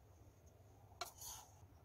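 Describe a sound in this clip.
Diced potatoes slide from a pan into a pot with a soft rattle.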